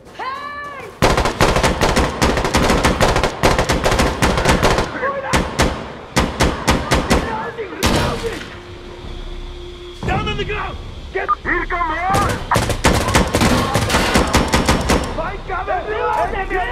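Rapid gunshots crack loudly in bursts.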